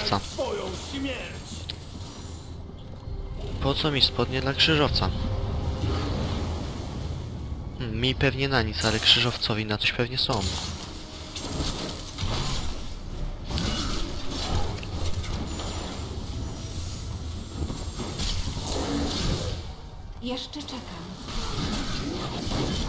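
Game spell effects crackle and blast throughout.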